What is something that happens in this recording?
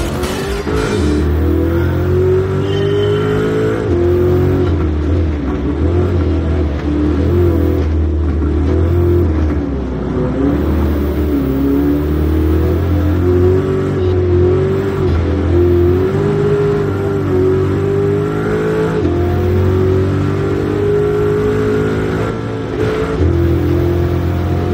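A racing car engine revs high and shifts gears.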